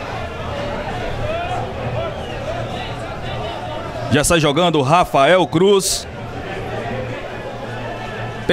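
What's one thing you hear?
A distant crowd of spectators murmurs and calls out outdoors.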